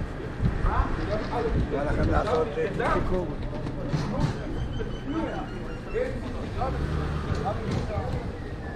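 Several adults chat nearby outdoors.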